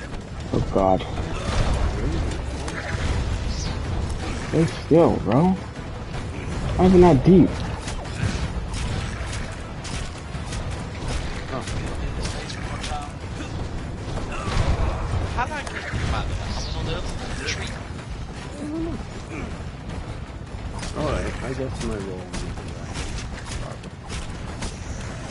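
Weapon blows strike a creature with sharp thuds.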